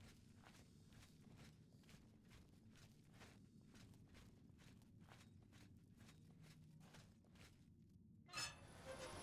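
Footsteps tread steadily on stone in an echoing tunnel.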